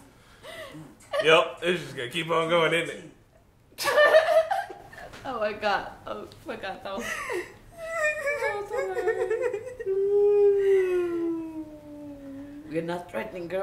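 A group of young adults laugh and chatter loudly nearby.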